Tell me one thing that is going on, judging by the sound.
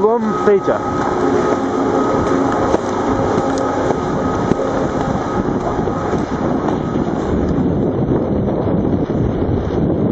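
Wind buffets the microphone outdoors, rumbling steadily.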